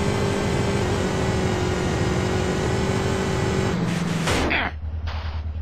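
A motorcycle engine roars at speed.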